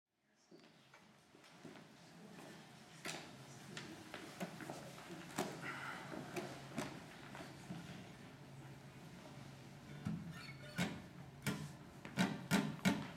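A mandolin plays a lively ragtime tune.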